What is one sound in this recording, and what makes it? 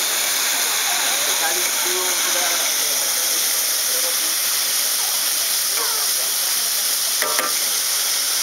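Metal tongs scrape and clink against a pan.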